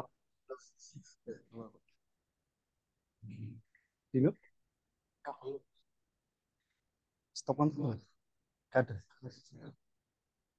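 A man speaks into a microphone in short phrases with pauses.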